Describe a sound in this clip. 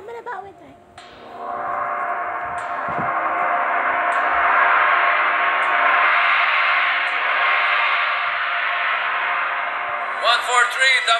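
A large gong is struck with a mallet and rings out in a long, shimmering hum that slowly fades.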